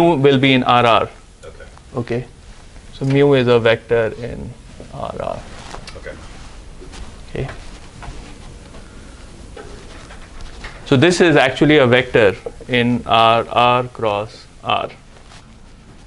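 A man speaks calmly in a room, a little way off.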